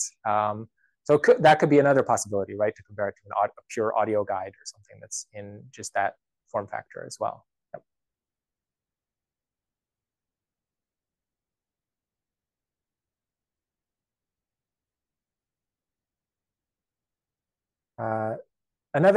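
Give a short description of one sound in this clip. A man speaks calmly into a microphone, as if presenting in an online call.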